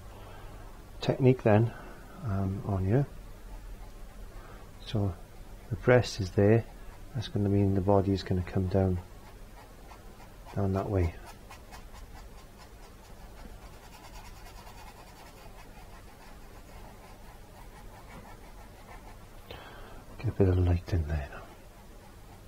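A middle-aged man talks calmly and closely into a microphone.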